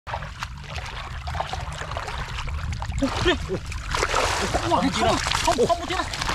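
Hands squelch and slosh through wet mud.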